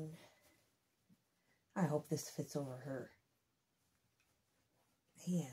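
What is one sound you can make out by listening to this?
Fabric rustles softly as hands adjust a small garment.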